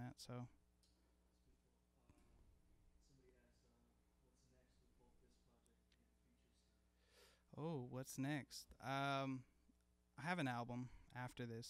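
A man sings close into a microphone.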